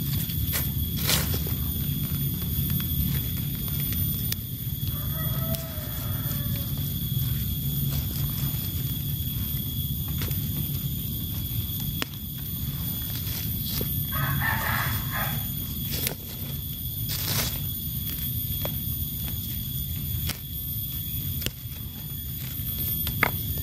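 Dry leaves rustle and crackle under a hand.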